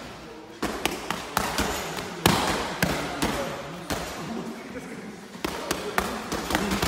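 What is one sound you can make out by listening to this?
Boxing gloves smack against padded mitts in quick bursts, echoing in a large hall.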